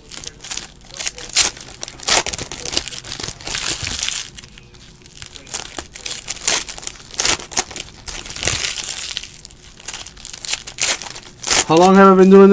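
Foil wrappers crinkle and tear as hands open packs.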